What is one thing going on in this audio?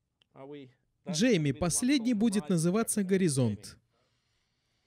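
An older man talks with animation into a close microphone.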